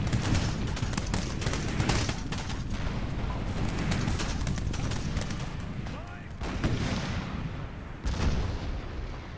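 Musket shots crackle and pop in rapid volleys.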